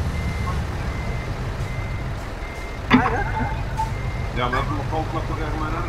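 A heavy truck engine idles with a low, steady rumble.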